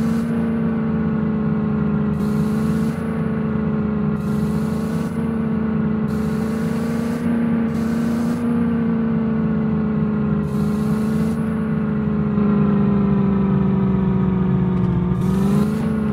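A vehicle engine hums steadily, rising slightly in pitch near the end.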